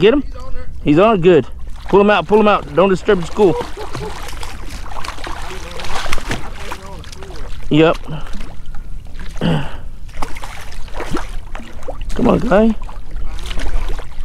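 A fish splashes and thrashes at the water's surface.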